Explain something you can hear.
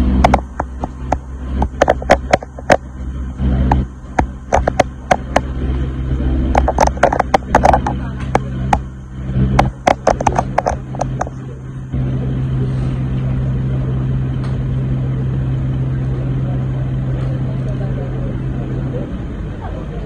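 A large car engine idles with a steady low hum.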